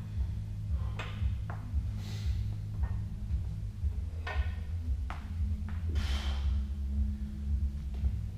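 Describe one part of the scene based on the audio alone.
Weight plates rattle on a barbell during squats.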